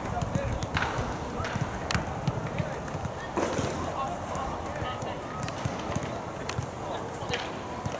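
Young men shout to each other across an open field at a distance.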